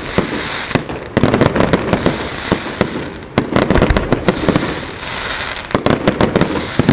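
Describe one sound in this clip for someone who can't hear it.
Fireworks crackle and fizz overhead.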